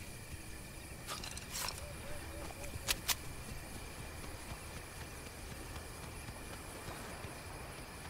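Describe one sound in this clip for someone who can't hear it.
Footsteps patter quickly over dirt.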